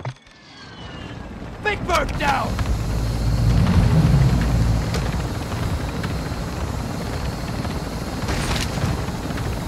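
Wind and engines roar steadily inside an open aircraft hold.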